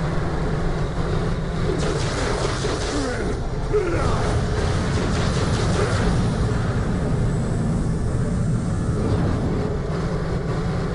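A vehicle engine roars steadily as it drives over rough ground.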